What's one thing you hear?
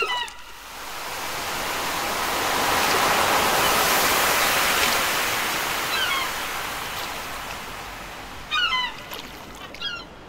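Waves wash gently and swell in the background.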